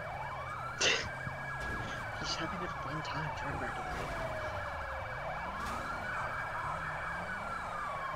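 Police sirens wail, rising and falling.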